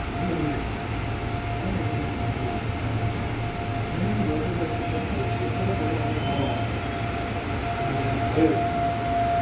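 A steady high electric whine hums inside the train carriage.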